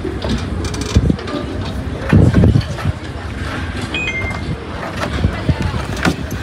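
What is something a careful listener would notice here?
A rope rubs and knocks against a car roof.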